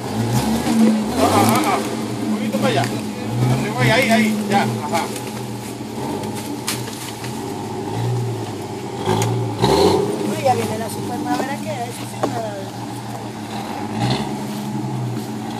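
Men shout and talk outdoors nearby.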